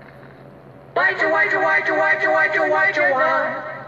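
A cartoon creature sings a bright warbling tune.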